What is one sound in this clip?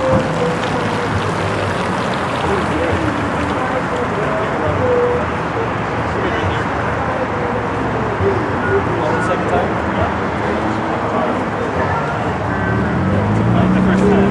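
A car engine revs hard as the car weaves through a course.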